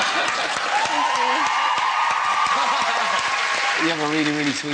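An audience cheers and applauds loudly.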